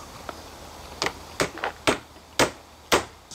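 A hammer taps a wooden peg into a wooden frame.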